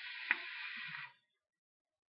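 A vape device hisses as a man draws on it.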